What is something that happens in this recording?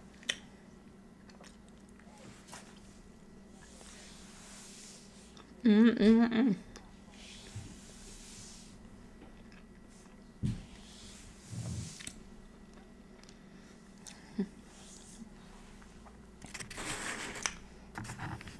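A woman chews food close to a microphone.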